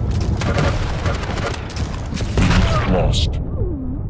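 Rapid gunfire blasts close by.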